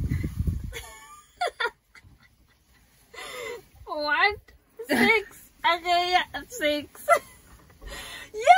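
Young women laugh and talk with animation close by.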